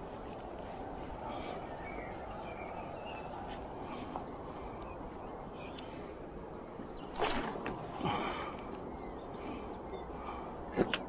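Wind blows steadily outdoors, with a few stronger gusts.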